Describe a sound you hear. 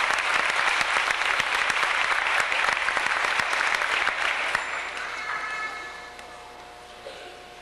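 A children's choir sings together, then the singing grows quieter.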